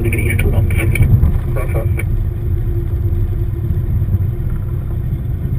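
A car engine rumbles steadily, heard from inside the car.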